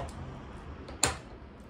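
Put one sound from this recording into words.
A plate clinks on a table.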